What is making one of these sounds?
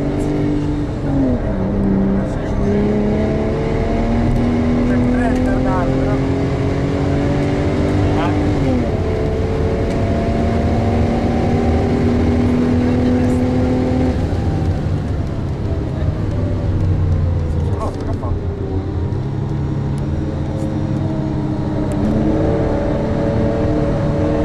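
A car engine roars loudly from inside the cabin, rising in pitch with each gear and dropping as the gears change.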